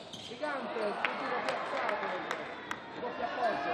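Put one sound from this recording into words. A ball bounces sharply on a wooden floor.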